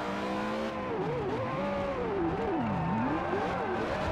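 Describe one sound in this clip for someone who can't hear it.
Tyres skid and crunch over gravel.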